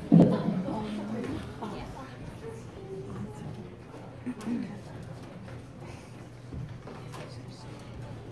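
A piano rolls and rumbles across a wooden stage.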